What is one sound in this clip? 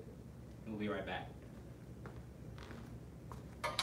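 Footsteps pad across the floor.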